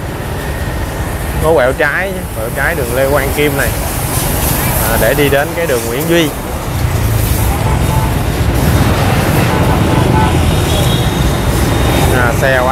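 Motorbike engines hum and buzz as traffic passes close by on a street.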